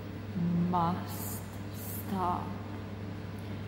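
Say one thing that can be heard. A woman speaks in short bursts close to the microphone.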